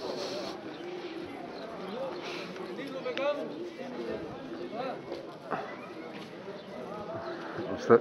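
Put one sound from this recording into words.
Several men murmur in the distance outdoors.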